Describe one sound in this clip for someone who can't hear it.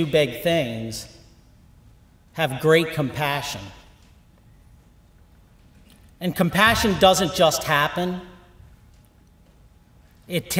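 A middle-aged man speaks calmly through a microphone in a large echoing hall, pausing between phrases.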